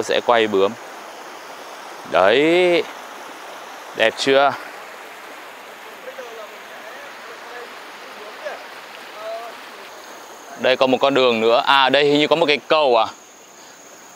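A shallow river rushes steadily over rocks nearby.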